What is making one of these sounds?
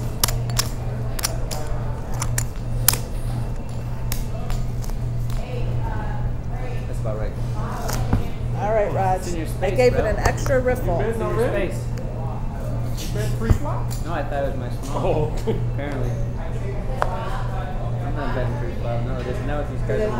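Poker chips click and clatter on a table.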